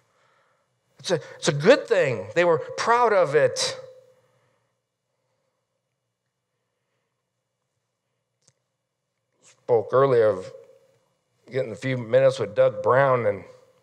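A middle-aged man speaks with animation through a microphone in a large echoing hall, pausing between phrases.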